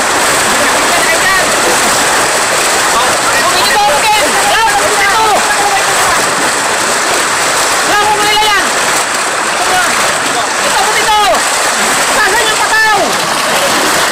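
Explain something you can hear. Several men shout and call out nearby.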